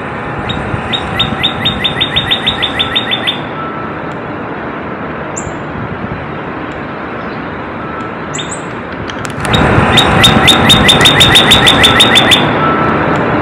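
A bird sings a fast series of sharp, repeated chirps, pausing and then starting again.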